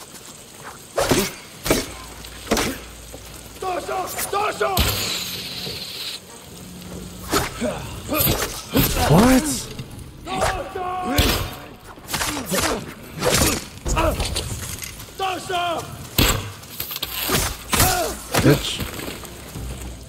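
Swords clash and strike in short, sharp blows.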